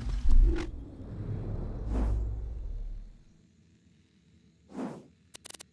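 A game menu makes a soft whooshing sound as pages change.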